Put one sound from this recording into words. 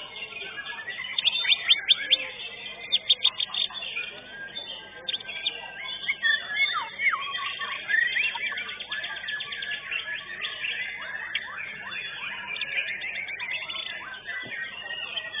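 A small bird sings loudly nearby in quick, chirping and whistling bursts.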